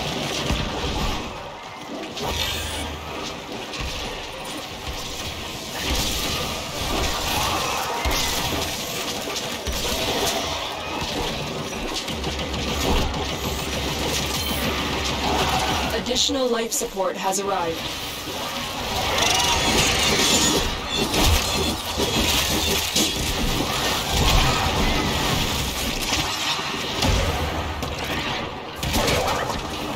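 Blades swish and strike in a fight.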